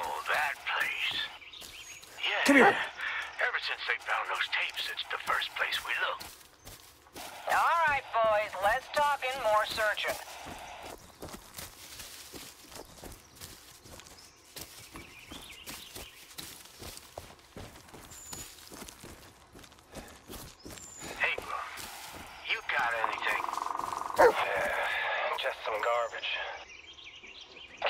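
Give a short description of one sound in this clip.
Footsteps rustle quickly through dry undergrowth.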